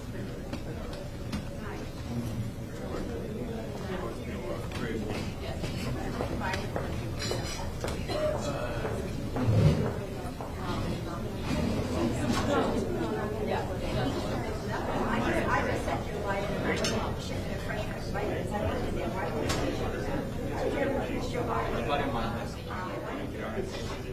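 Several men and women chat at once in a steady murmur of voices.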